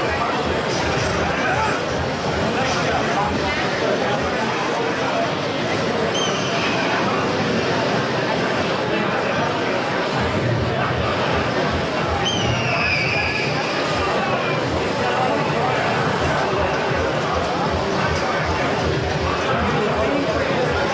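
Video game music and effects play steadily throughout.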